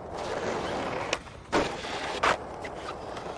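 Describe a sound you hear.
A skateboard clacks hard as it lands on the ground.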